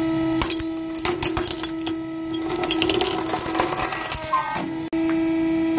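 Clay pots crack and shatter under a press.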